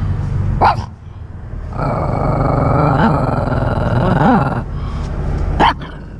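A small dog whines and yelps close by.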